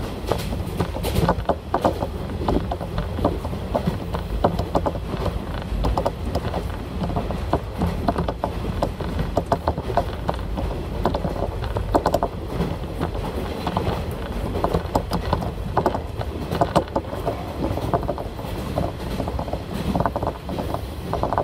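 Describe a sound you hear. Train wheels clatter over the rail joints.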